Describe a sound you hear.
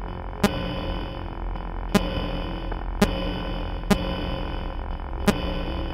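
Sharp electronic clicks sound now and then.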